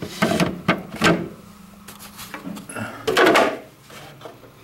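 A plastic tray scrapes as it slides out.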